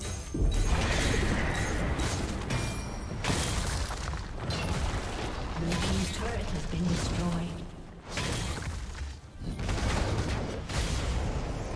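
Game spell effects whoosh and crackle amid clashing hits.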